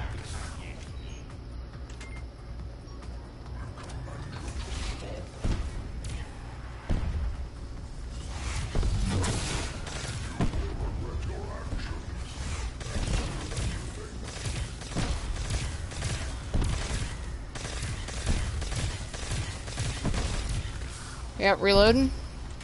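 Gunfire from a weapon rattles in rapid bursts.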